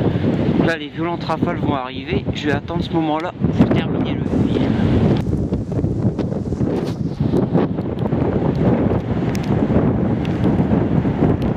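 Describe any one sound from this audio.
Strong wind roars and gusts through trees outdoors.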